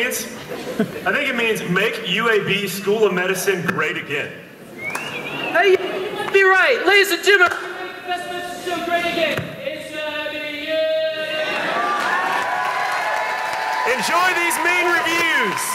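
A second young man answers loudly in a large echoing hall.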